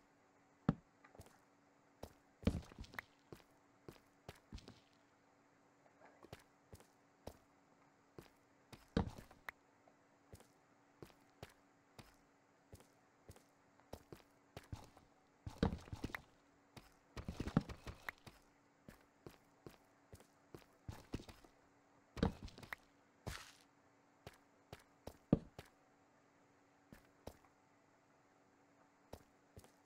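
Footsteps tap on hard stone at an uneven pace.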